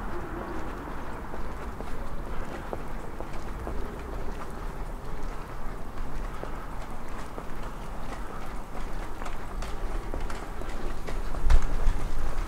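Footsteps walk steadily along a paved street outdoors.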